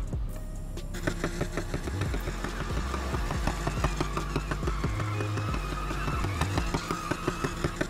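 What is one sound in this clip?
A car engine roars and revs hard.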